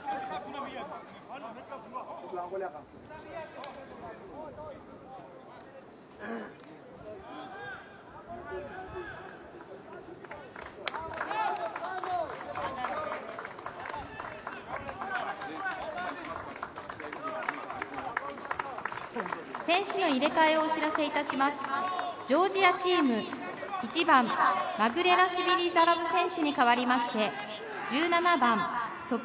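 Men call out and shout to each other outdoors.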